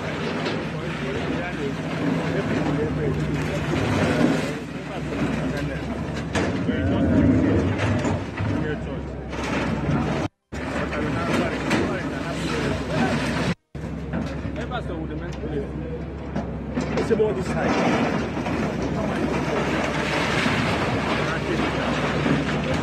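An excavator tears down a building's walls with crunching and crashing.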